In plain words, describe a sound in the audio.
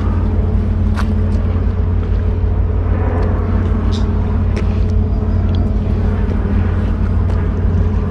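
Footsteps scuff on rough concrete.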